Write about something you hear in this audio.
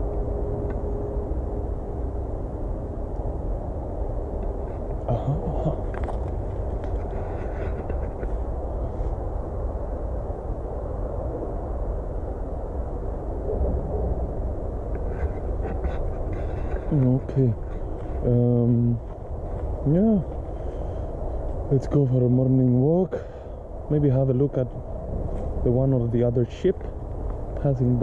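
Wind rustles through the leaves outdoors.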